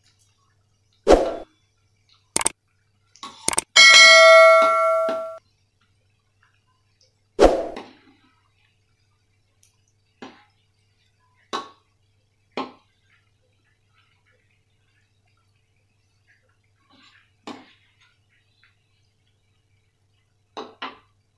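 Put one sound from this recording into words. A metal spatula scrapes and knocks against a wok.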